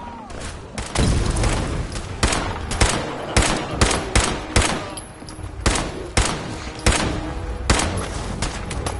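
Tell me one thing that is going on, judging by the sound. Explosions burst and roar.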